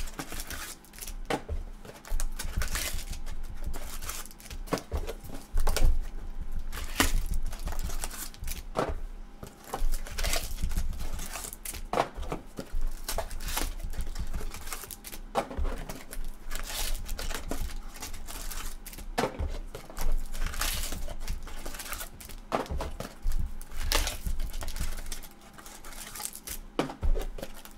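Gloved hands crinkle and tear plastic wrappers off trading card packs.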